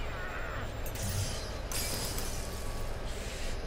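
A ceramic mug shatters on a hard floor.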